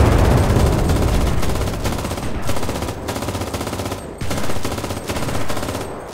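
A machine gun fires in rapid bursts close by.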